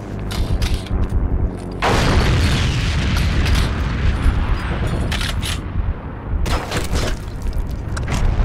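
A gun is reloaded with sharp metallic clicks.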